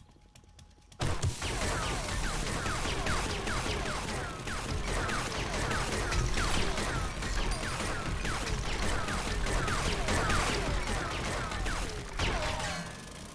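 A motor drill grinds loudly through rock.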